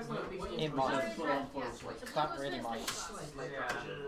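Playing cards riffle and shuffle softly.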